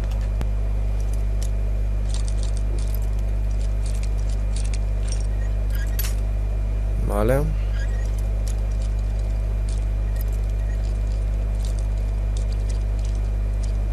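Small metal clicks and faint scraping come from a lockpick working in a lock.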